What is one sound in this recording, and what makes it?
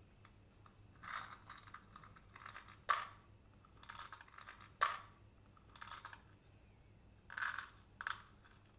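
Small candies rattle and drop into a palm.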